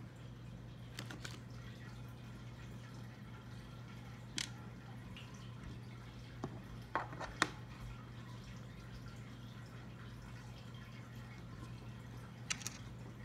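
Small plastic toy pieces click and tap together on a table.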